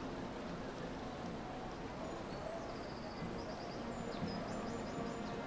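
Water laps gently against stone walls.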